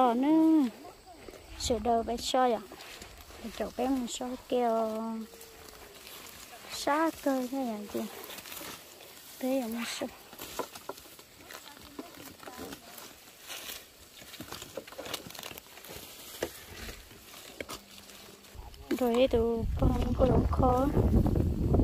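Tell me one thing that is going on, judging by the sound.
A woman talks nearby in a lively way.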